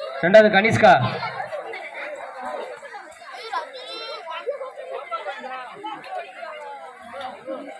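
Children chatter and murmur nearby.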